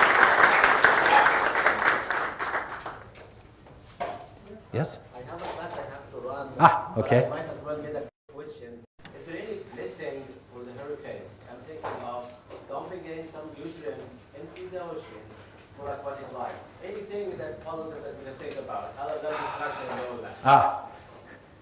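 A man lectures calmly through a microphone in a room with some echo.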